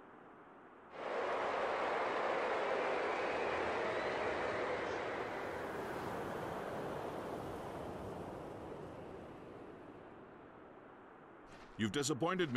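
Wind howls steadily and slowly fades.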